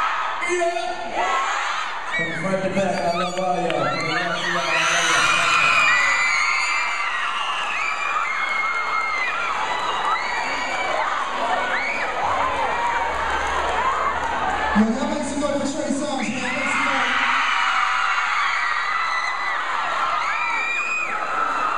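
A large crowd screams and cheers loudly in an echoing hall.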